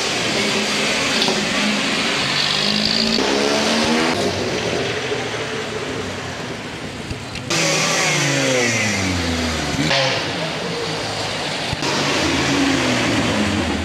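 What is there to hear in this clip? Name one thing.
Off-road vehicle engines rumble and rev as they drive past one after another.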